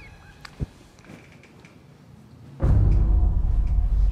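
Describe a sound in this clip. A door handle clicks and a door swings open.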